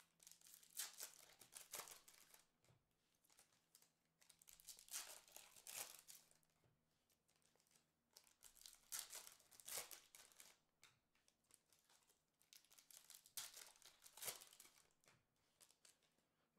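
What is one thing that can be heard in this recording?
A foil wrapper crinkles and tears in bursts close by.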